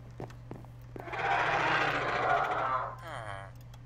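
A wooden barrel creaks open.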